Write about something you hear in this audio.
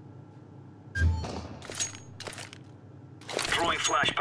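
A gun clicks and rattles as it is handled.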